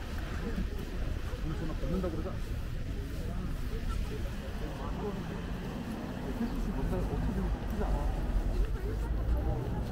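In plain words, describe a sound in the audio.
People talk in the distance.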